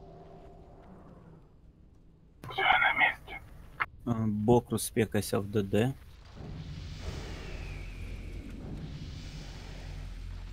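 Fantasy battle sounds clash and whoosh.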